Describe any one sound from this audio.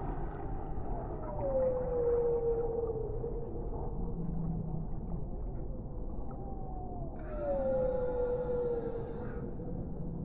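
A whale sings in long, low, falling moans.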